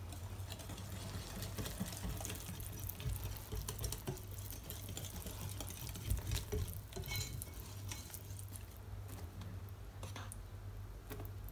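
A whisk clinks briskly against a glass bowl.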